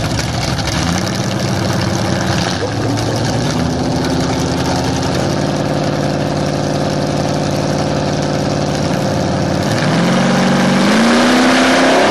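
A second race car engine rumbles and revs up in bursts.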